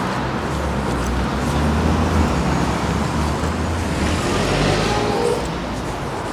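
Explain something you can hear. A car drives slowly past close by.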